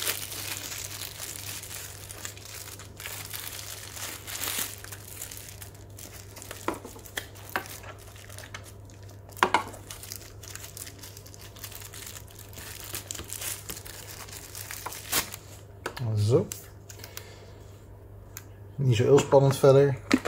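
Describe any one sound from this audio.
A cable rustles and taps against a cardboard box.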